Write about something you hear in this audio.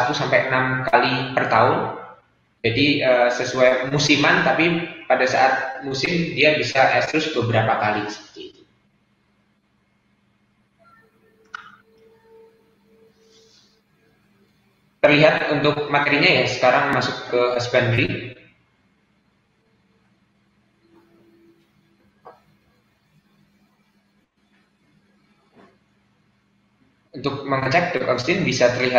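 A man speaks calmly over an online call, pausing now and then.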